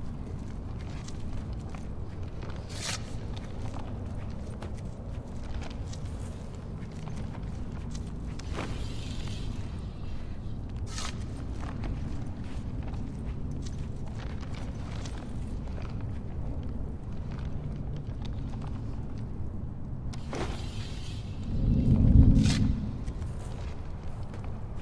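Footsteps shuffle softly on a gritty floor.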